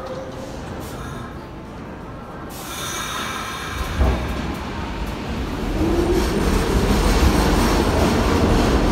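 A subway train rumbles and rattles past, growing louder as it speeds up.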